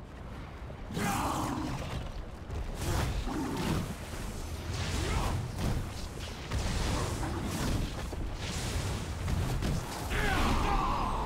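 Spells crackle and blows clash in a loud fight.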